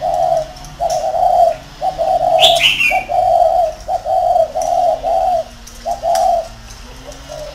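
A guineafowl calls in harsh, repeated bursts close by.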